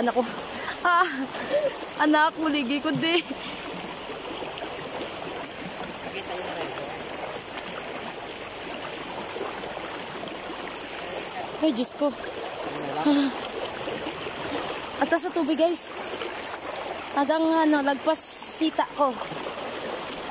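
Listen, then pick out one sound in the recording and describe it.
A boy talks close by, loudly and with animation.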